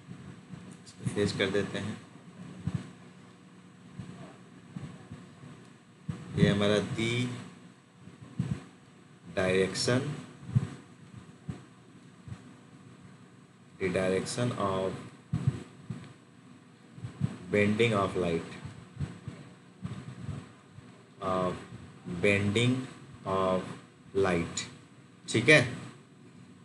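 A man speaks calmly through a close microphone, explaining in short phrases with pauses.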